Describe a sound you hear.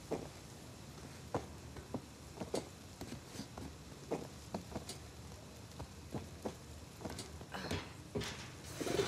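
A metal ladder clanks as someone climbs down it.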